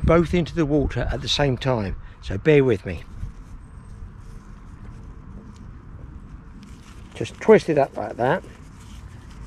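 An elderly man talks calmly and close to a microphone, outdoors.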